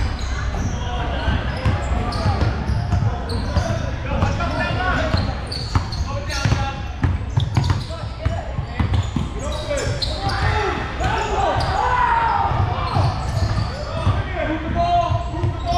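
Young players and spectators call out and chatter in the echoing hall.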